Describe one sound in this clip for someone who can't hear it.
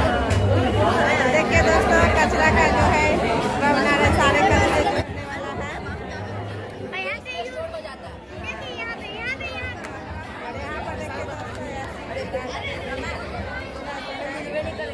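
Children chatter nearby.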